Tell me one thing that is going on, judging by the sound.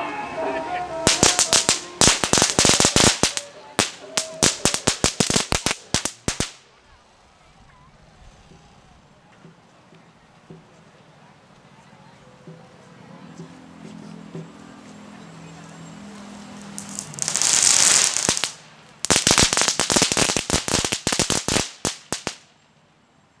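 Drums and cymbals clash in rapid loud bursts outdoors.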